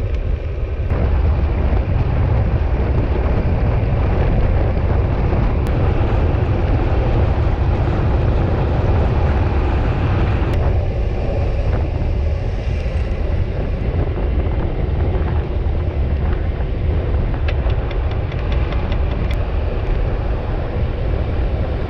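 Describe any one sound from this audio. Wind rushes loudly past a bicycle rider descending outdoors.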